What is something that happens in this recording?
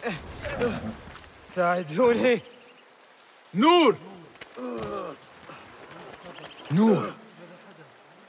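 A man grunts and groans in pain.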